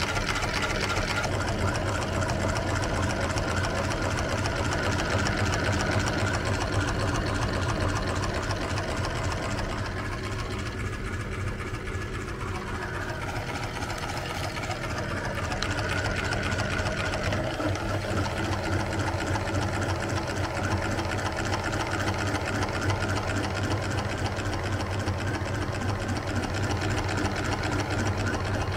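An electric grinder motor hums steadily.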